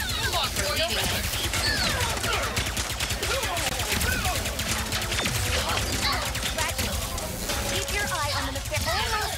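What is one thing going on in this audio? Energy shots zap and whine with sliding pitches.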